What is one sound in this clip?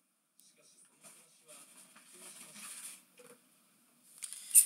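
Foil wrappers crinkle softly as they are handled close by.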